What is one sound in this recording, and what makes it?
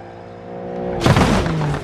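A car crashes into a caravan with a loud crunch.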